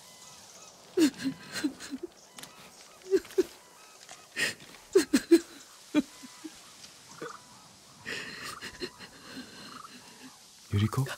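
A woman sobs quietly.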